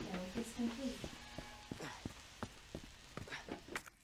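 Footsteps echo on a hard floor.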